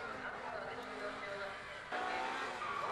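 A race car engine drones as the car drives past.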